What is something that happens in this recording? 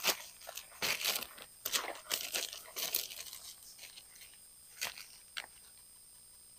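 A plastic sheet crinkles and rustles as it is folded.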